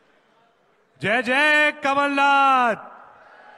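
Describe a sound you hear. A young man shouts a long drawn-out call through a microphone.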